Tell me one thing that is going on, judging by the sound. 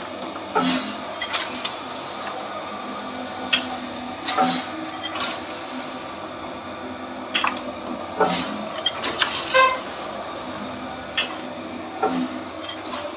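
Metal parts clank sharply on a running machine.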